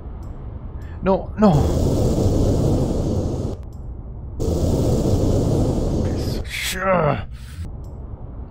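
A young man screams loudly into a headset microphone.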